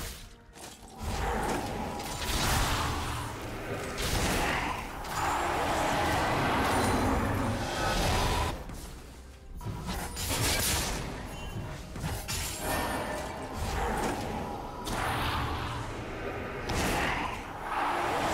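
Magic spells whoosh and crackle during a video game battle.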